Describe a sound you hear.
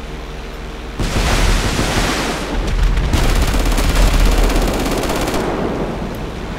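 A loud crash and rumbling explosion booms.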